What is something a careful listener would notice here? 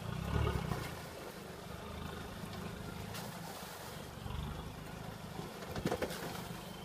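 Tyres splash and churn through muddy water.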